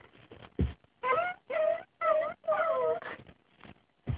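A young girl sings in a high voice.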